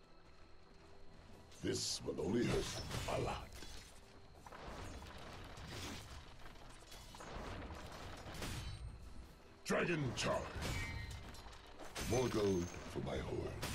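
Weapons clash and spells burst in a video game battle.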